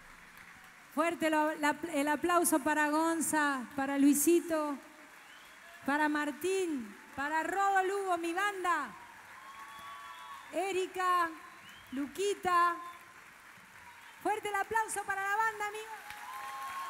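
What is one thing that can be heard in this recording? A woman sings loudly into a microphone, heard through loudspeakers.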